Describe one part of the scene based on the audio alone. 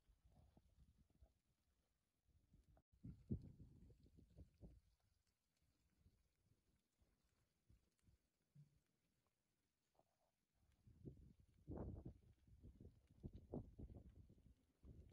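A flock of sheep shuffles and trots over dry dirt.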